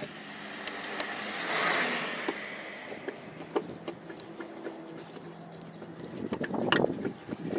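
A scissor jack creaks as it is wound.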